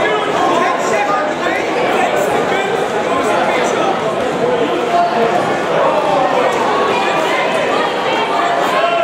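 A crowd chatters and calls out steadily in a large echoing hall.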